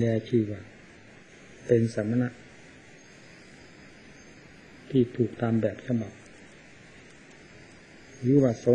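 An elderly man speaks slowly into a microphone in short phrases with pauses.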